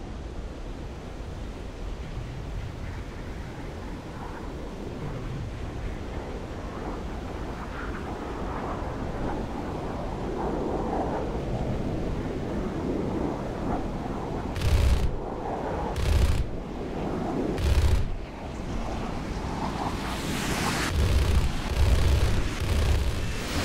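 A jet engine roars steadily with afterburner.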